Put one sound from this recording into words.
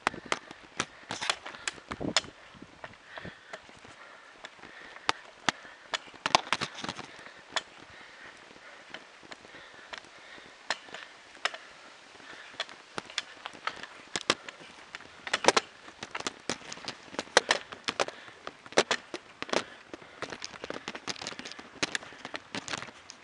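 Footsteps tap on a paved road.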